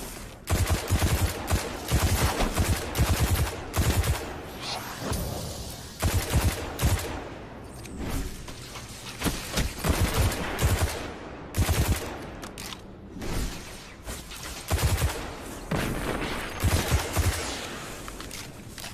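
Rapid gunfire bursts loudly, in short repeated volleys.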